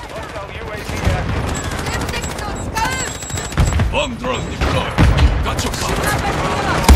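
Gunshots fire in rapid bursts nearby.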